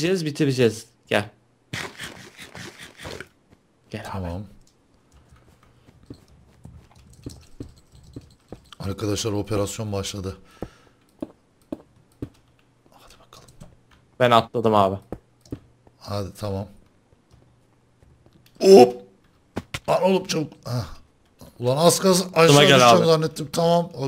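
Another young man talks animatedly into a microphone, close by.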